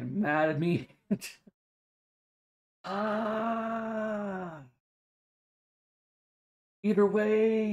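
A man talks with animation through a microphone, in bursts with long pauses.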